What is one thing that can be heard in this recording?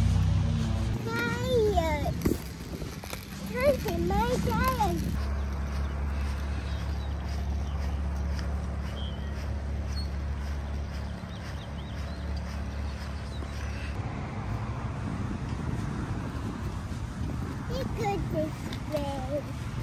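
Small scooter wheels roll over pavement.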